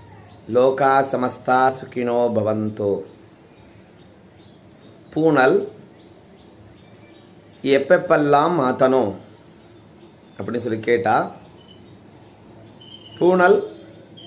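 A middle-aged man speaks close up in short phrases, calmly and with pauses.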